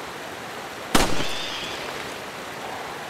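A single pistol shot rings out sharply and echoes away.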